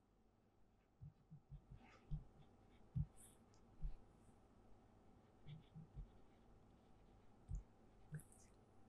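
A pen taps and scratches faintly while writing.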